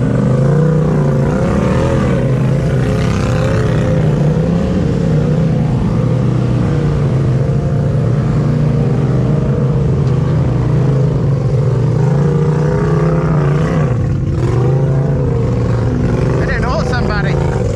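An off-road vehicle's engine rumbles and revs up and down as it crawls over rocks nearby.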